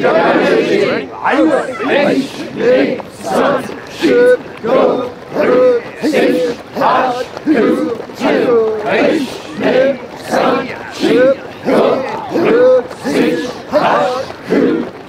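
A group of men and women shout counts together in a steady rhythm, outdoors.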